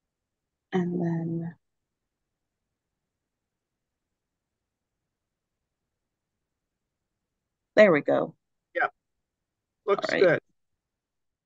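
A woman speaks calmly in short bursts over an online call.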